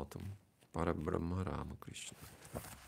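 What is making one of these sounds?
A man chants a short phrase into a microphone.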